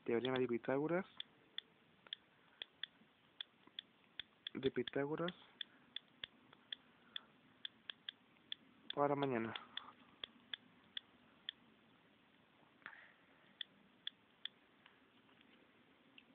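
A phone's keyboard clicks with each tap of a key.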